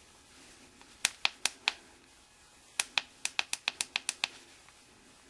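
Buttons on a handheld device click several times in quick succession.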